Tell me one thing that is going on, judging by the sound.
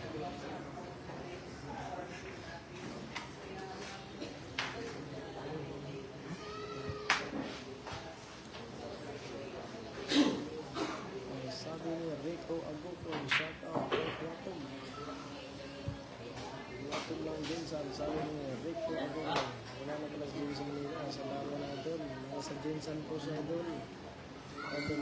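A crowd of men chatters steadily all around.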